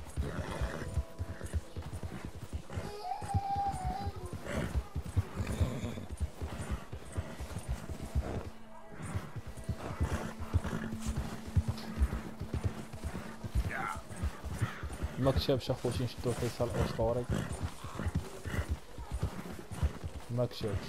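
A horse's hooves crunch steadily through snow.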